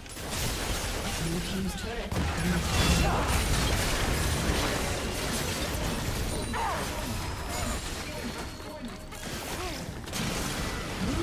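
Magic spells crackle and whoosh in a hectic fight.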